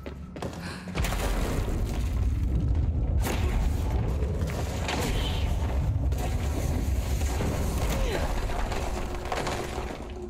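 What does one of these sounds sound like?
Heavy rocks crash and tumble with a deep rumble.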